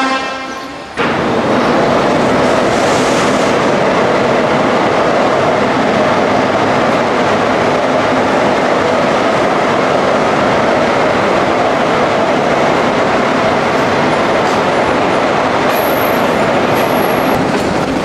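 A train rolls along the tracks with a steady, loud rumble and rattle.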